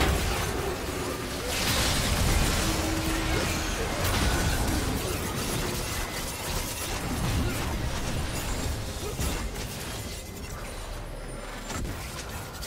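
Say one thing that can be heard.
Blows and blasts thud and crash during the fight.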